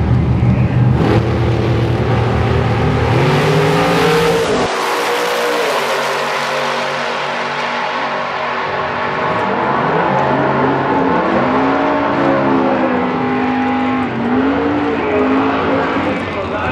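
A drag racing engine roars at full throttle, rising in pitch as it speeds away into the distance.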